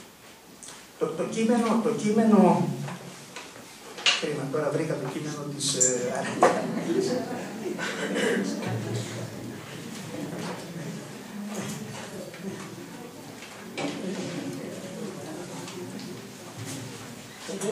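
An older man speaks calmly into a microphone, heard through loudspeakers in an echoing hall.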